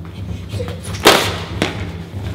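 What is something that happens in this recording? A person falls and hits a hard floor with a thud.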